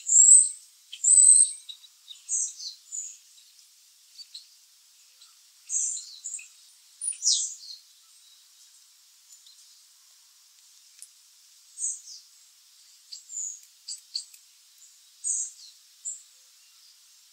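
A bird chirps close by in short, high bursts.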